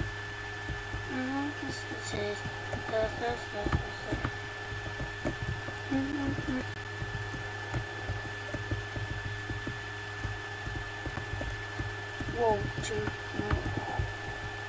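A boy speaks casually into a nearby microphone.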